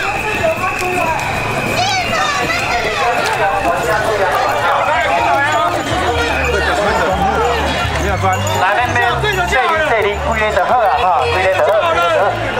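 A crowd of people chatters and calls out outdoors in a busy street.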